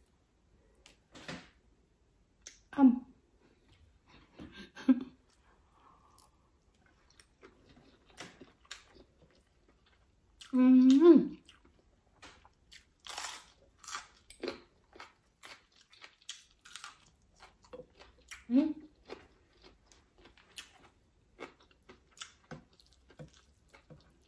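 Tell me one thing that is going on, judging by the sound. A woman chews and slurps food noisily close to a microphone.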